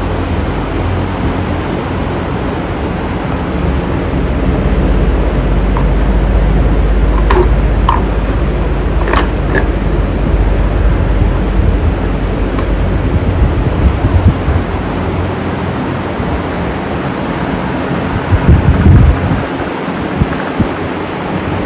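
An electric fan whirs steadily with a low hum.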